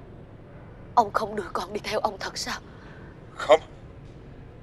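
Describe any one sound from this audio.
A middle-aged woman speaks tearfully and with distress, close by.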